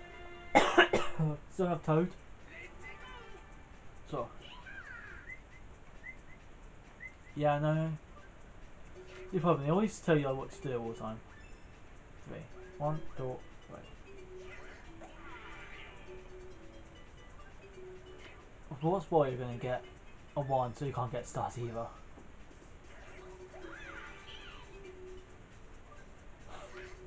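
Playful video game music and chimes play from a television speaker.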